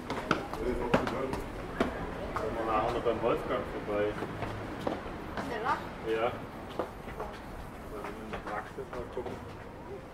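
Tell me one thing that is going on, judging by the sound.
Footsteps tap on stone steps.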